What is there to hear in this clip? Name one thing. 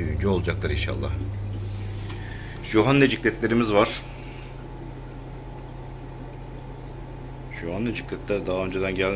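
Water bubbles steadily through aquarium filters.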